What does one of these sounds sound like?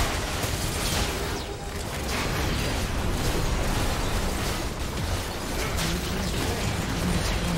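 Fantasy battle sound effects clash and burst.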